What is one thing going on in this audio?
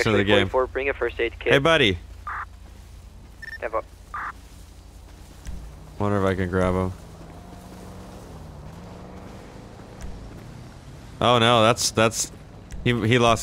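Footsteps crunch on dry dirt and gravel.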